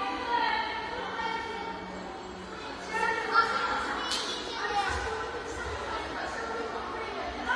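Young men call out to each other in an echoing indoor hall.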